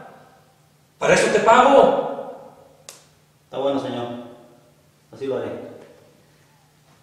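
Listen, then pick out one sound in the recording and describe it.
A second man answers calmly nearby.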